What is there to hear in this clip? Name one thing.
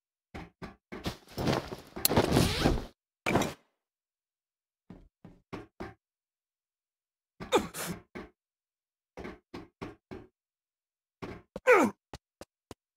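Boots clang and thump on a metal roof.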